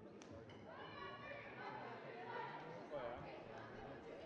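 Young women on a team call out and shout together.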